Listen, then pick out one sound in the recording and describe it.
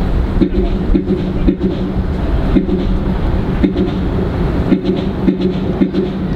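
A brass band plays a slow march outdoors.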